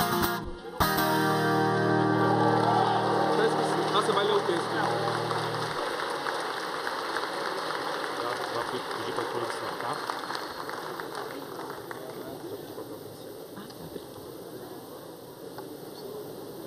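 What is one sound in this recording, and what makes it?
A large crowd applauds and cheers in a big echoing hall, slowly fading.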